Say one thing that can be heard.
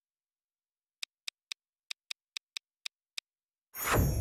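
Short electronic menu blips tick in quick succession.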